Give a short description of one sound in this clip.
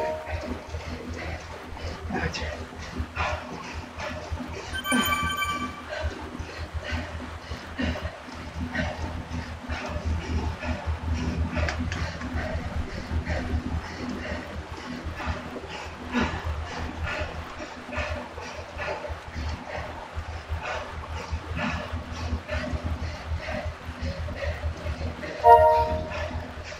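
A young woman breathes hard and pants close to a microphone.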